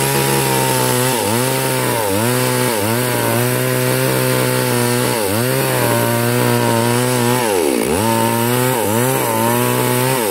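A chainsaw engine roars loudly and dips in pitch repeatedly as it cuts through a log.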